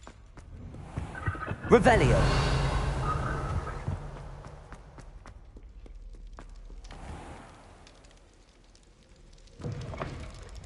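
Footsteps tap on a hard stone floor.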